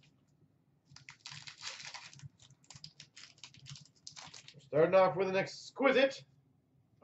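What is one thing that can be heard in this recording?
Hands tear open a crinkling foil card pack.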